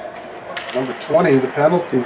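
A hockey stick slaps a puck at a faceoff.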